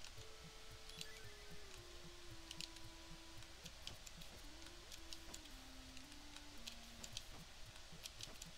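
Short electronic blips of a video game sound now and then.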